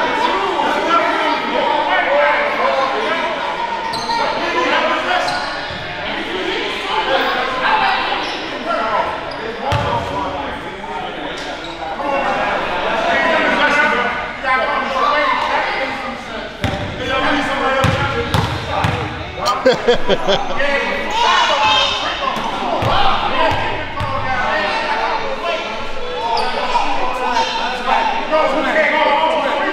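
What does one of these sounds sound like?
Men talk and call out across a large echoing gym.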